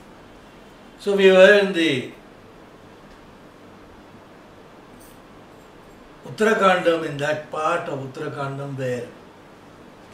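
An older man chants slowly in a low voice, close by.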